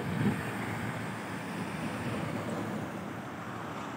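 A tanker truck's diesel engine rumbles as it drives past.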